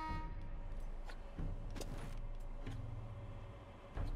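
Weapons clash in a fight.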